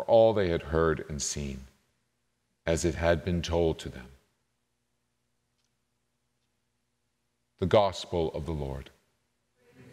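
A man speaks slowly and solemnly into a microphone in an echoing hall.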